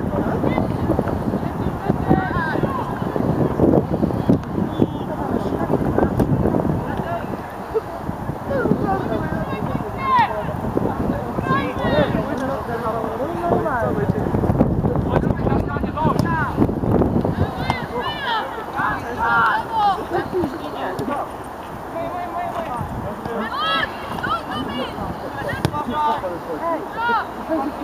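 Teenage boys shout and call to each other outdoors across a pitch.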